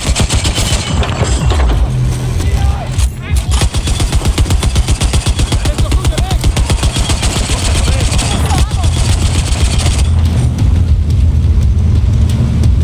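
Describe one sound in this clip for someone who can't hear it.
A heavy machine gun fires rapid, booming bursts.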